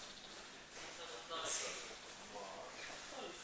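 Young men talk quietly in a large echoing hall.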